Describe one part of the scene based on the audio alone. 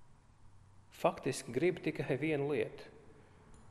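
A man chants in a calm, steady voice through a microphone.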